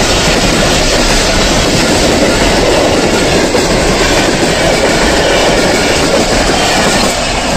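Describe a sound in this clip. A passenger train rushes past close by with a loud, steady rumble and rattle of wheels on the rails.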